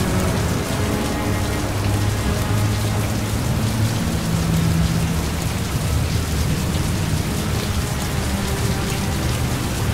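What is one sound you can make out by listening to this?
Rain falls steadily on wet pavement.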